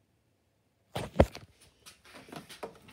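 A plastic jug knocks and rattles as a hand grabs it.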